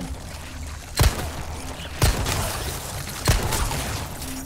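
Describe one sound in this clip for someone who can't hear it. A handgun fires several loud shots that echo.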